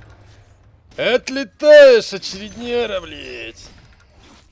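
A young man shouts excitedly into a microphone, close up.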